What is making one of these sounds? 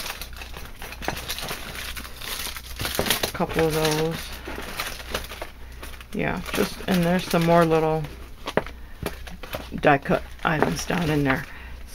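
Small items are dropped into a box with soft thuds.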